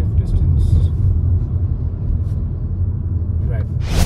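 A bus rumbles past close by.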